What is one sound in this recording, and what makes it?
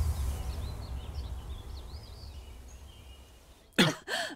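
Birds chirp in the trees outdoors.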